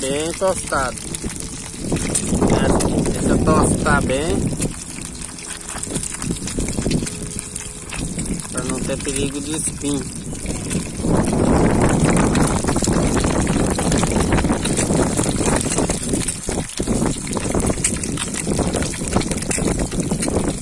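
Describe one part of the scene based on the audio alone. Food sizzles and crackles as it fries in hot oil.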